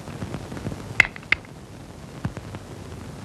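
Snooker balls click together on a table.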